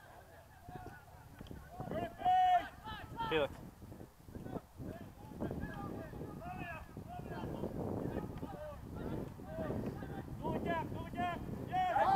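Spectators close by shout and cheer loudly outdoors.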